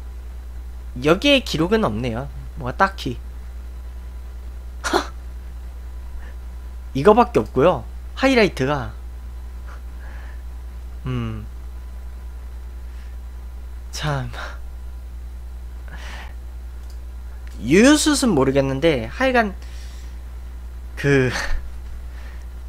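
A young man talks with animation in short bursts, close to a microphone.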